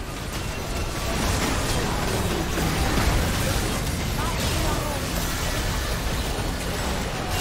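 Game spell effects whoosh, crackle and burst in a busy fight.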